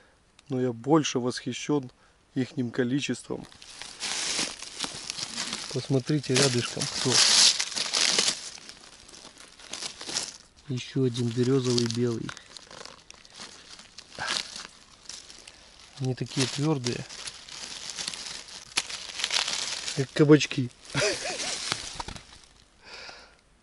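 A man talks with animation close to the microphone.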